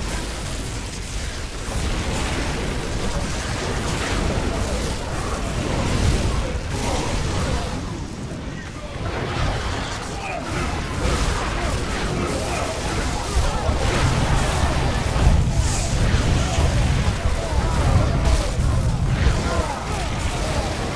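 Heavy booms and impacts thud again and again.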